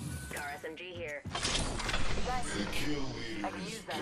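A metal supply bin slides open with a hiss.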